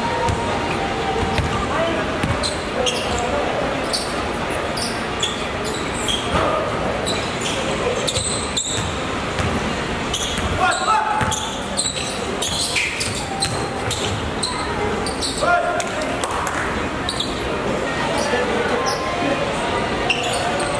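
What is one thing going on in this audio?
A basketball bounces on a court floor.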